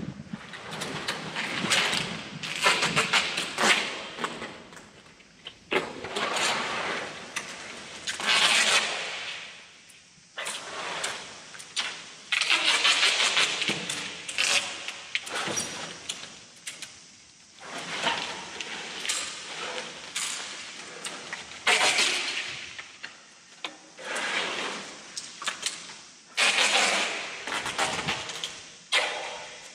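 Dry branches scrape and crackle as they are dragged across the ground.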